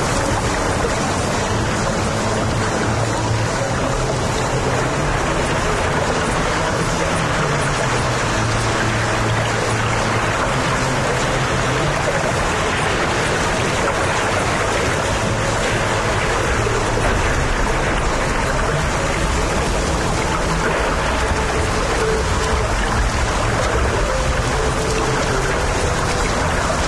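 Swimmers splash and churn through the water.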